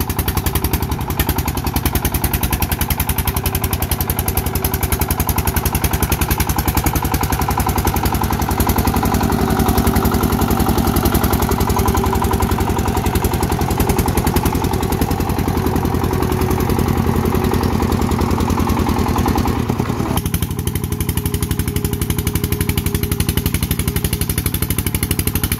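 A small diesel tractor engine chugs loudly and rapidly close by.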